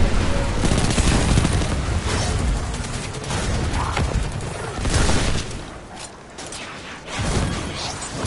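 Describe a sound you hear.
Gunfire and explosions boom loudly in a video game.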